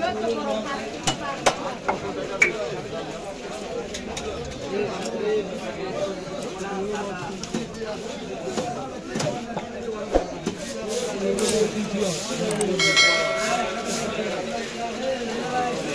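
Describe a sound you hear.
Wet fish pieces squelch and scrape against a metal blade.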